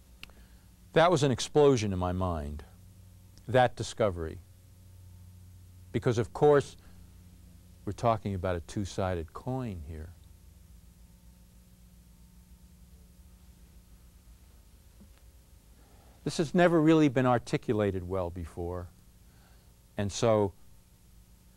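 A man speaks clearly and deliberately into a microphone, pausing between phrases.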